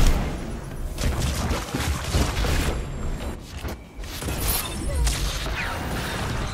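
Gunfire and blasts crack in quick bursts.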